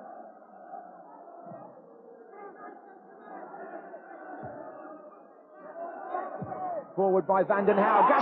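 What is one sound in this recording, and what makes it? A crowd murmurs in a stadium.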